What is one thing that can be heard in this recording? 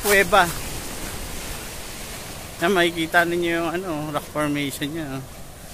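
Waves wash onto a pebble shore.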